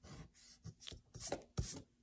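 An eraser rubs briskly against paper.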